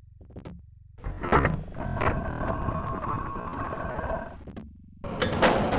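A heavy stone wall slides open with a grinding rumble.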